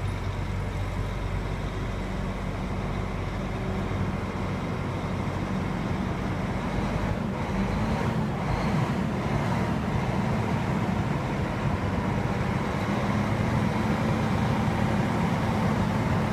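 A bus engine idles with a steady low rumble close by.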